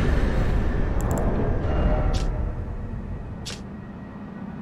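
Short soft clicks tick a few times.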